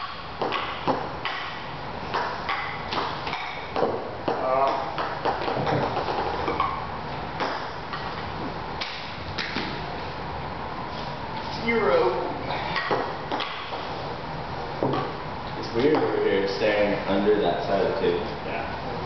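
Paddles tap a ping pong ball back and forth.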